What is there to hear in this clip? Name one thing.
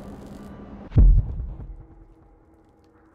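A loud boom bursts and rumbles away.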